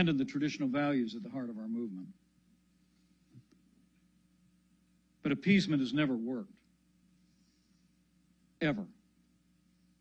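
A middle-aged man speaks calmly into a microphone, with short pauses.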